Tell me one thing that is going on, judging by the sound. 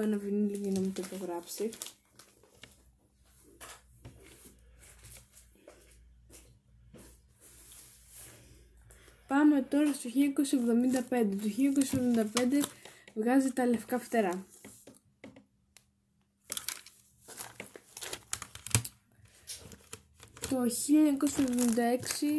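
A teenage girl talks calmly and close by.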